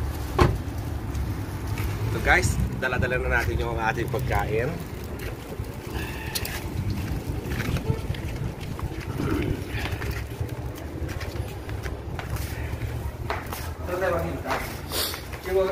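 Plastic bags rustle.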